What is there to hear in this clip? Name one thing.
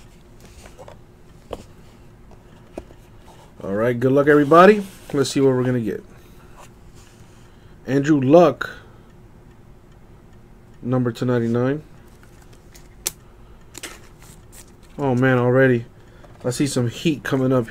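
Trading cards rustle and slide against each other in hands.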